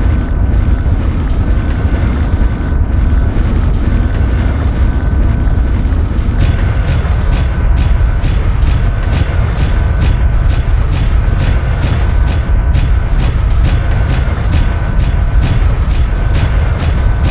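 A heavy machine rumbles low and steady.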